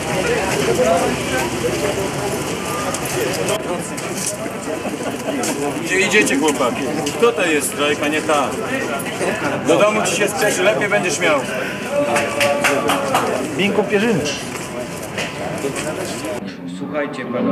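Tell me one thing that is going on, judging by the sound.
A crowd of men murmurs and talks outdoors.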